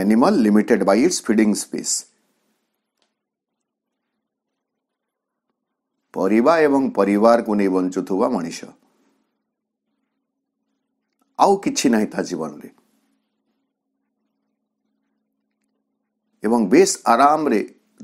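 A man speaks calmly in short phrases, with long pauses between them.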